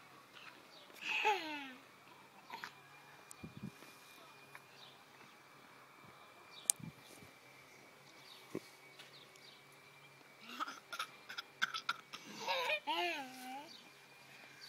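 A toddler squeals with delight close by.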